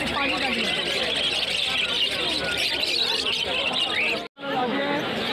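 Many small parakeets chirp and twitter busily close by.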